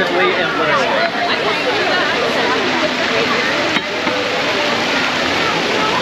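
A fountain splashes steadily nearby.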